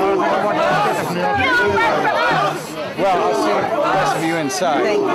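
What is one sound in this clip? A crowd murmurs and chatters outdoors in the background.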